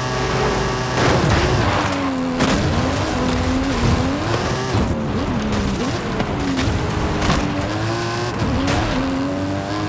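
Tyres rumble and skid over rough dirt.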